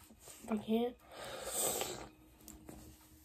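A plastic bottle cap twists open with a crackle.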